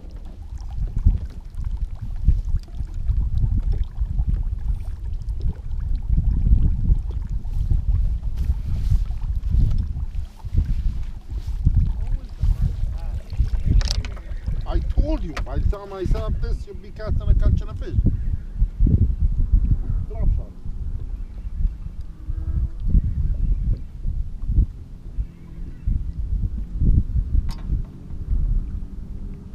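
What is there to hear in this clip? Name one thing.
Wind buffets loudly outdoors on open water.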